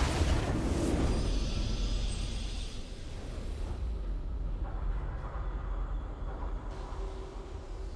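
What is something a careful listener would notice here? A triumphant victory fanfare plays in a video game.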